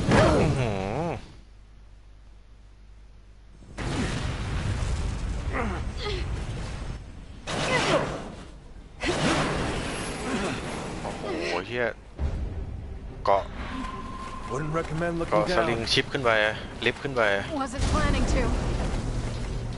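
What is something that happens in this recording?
A man talks into a headset microphone with animation.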